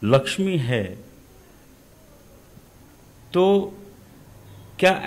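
A middle-aged man speaks emphatically into a microphone close by, in short bursts.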